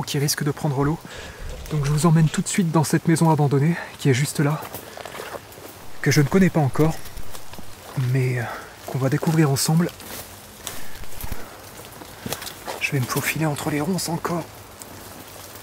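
A young man speaks quietly and tensely, close by.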